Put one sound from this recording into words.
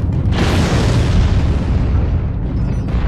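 An explosion booms and fades.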